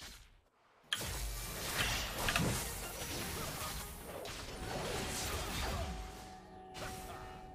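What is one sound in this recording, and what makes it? Game spells crackle and clash in a fight.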